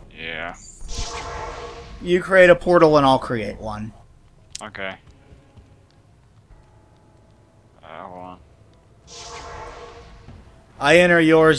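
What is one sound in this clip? A magic portal opens with a rushing whoosh.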